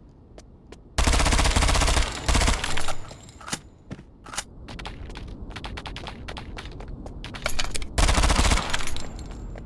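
A rifle fires loud, rapid bursts of shots close by.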